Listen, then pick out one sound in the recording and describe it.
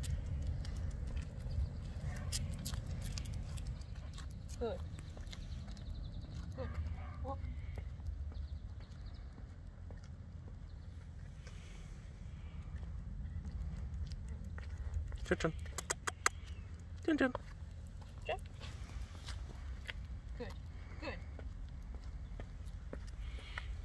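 Shoes step lightly on pavement.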